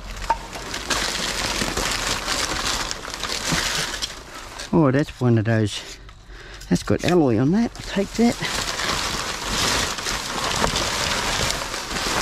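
Plastic bags crinkle and rustle as hands rummage through rubbish.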